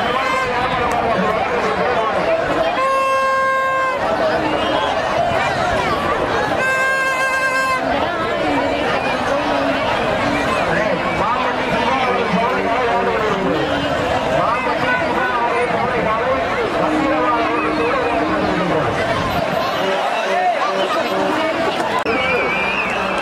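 A large outdoor crowd cheers and shouts loudly.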